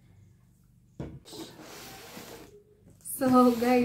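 A cardboard box scrapes and rustles as it is handled.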